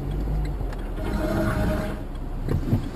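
A windscreen wiper swipes across the glass.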